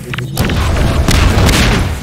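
A gun fires in a burst of loud shots.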